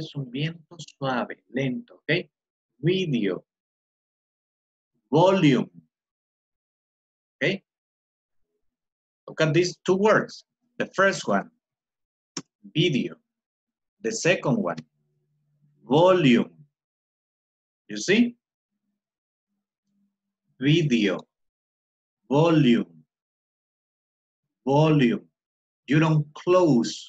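A middle-aged man speaks with animation over an online call, in short bursts with pauses.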